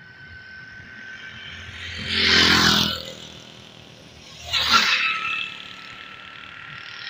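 Motorcycle engines roar loudly as they pass close by, one after another.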